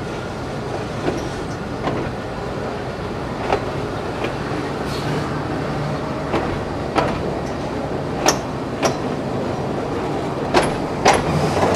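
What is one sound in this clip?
Wheels click over rail joints.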